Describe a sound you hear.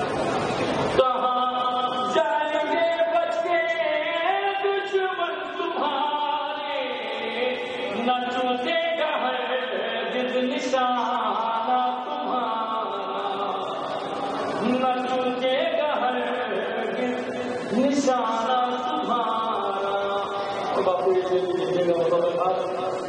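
A young man sings a slow, melodic recitation through a microphone.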